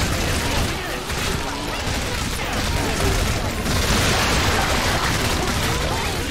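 Explosions boom and crackle continuously.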